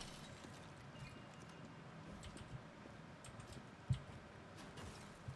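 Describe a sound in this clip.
Footsteps patter across hard ground.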